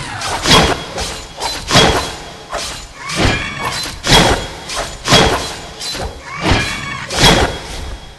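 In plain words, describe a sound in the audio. A creature snarls as it is hit.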